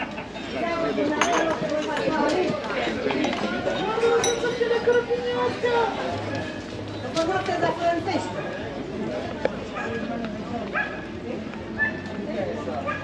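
Men and women chatter in a lively way close by, outdoors.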